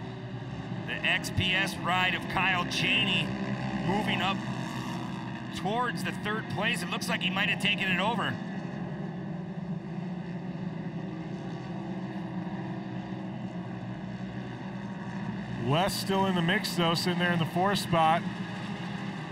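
Buggy engines rev up and down sharply, rising and falling in pitch.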